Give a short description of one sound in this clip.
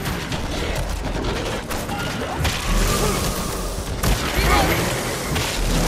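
Snarling creatures growl and shriek close by.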